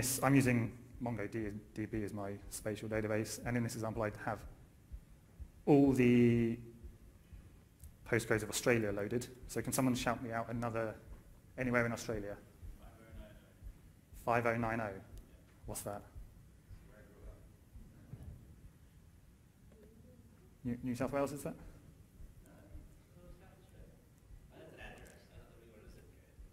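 A young man speaks calmly into a microphone, with pauses.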